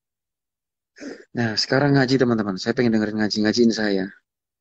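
A young man speaks close to a phone microphone.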